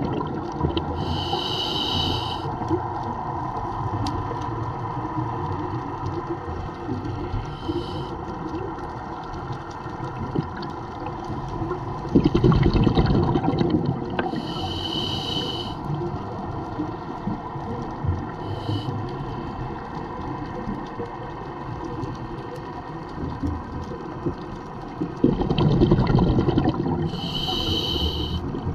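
Bubbles rush and gurgle from a diver's breathing regulator underwater.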